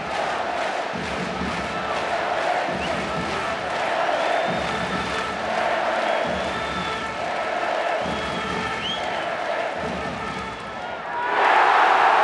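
A large crowd chants rhythmically in a big echoing arena.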